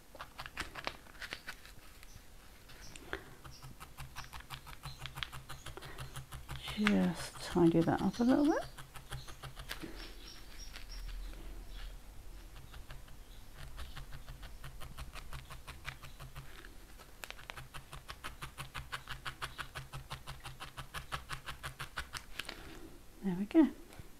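A felting needle stabs rapidly and softly into foam, with quick, even ticks.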